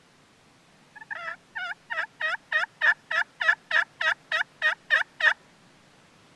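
A hand-worked turkey call yelps in a quick, even series.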